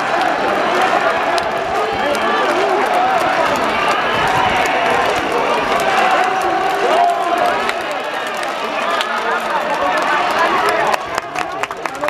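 A large stadium crowd chants and cheers loudly.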